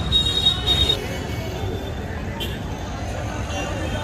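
Traffic rumbles along a street.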